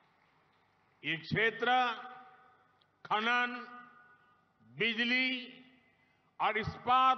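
An elderly man gives a speech slowly and forcefully through a microphone and loudspeakers, in short phrases with pauses.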